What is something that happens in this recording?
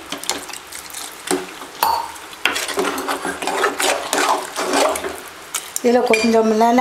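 A metal spoon scrapes and clinks against a metal pot.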